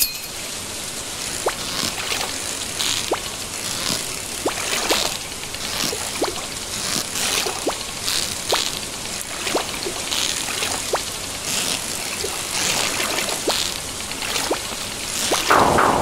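A fishing line reels in with quick clicking ticks.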